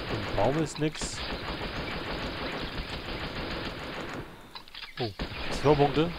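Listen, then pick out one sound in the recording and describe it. A shotgun fires loud shots.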